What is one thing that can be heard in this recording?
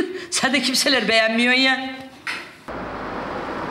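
A middle-aged woman speaks calmly up close.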